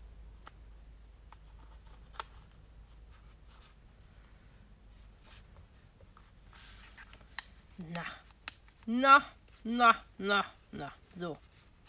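A small metal clip clicks against paper.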